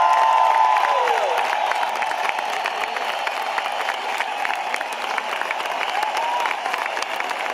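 A crowd claps rapidly.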